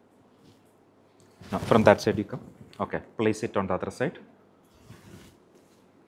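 Surgical drapes rustle as they are unfolded and laid out.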